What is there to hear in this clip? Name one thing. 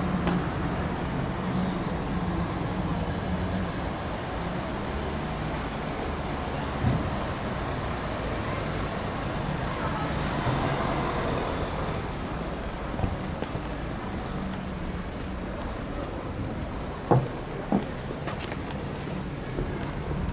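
Street traffic hums steadily in the distance outdoors.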